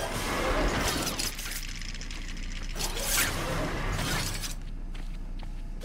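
Footsteps walk along a hard floor.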